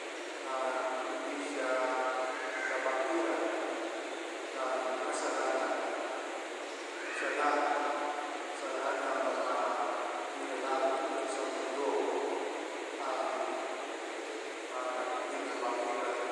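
A man chants steadily into a microphone, heard through loudspeakers in a large echoing hall.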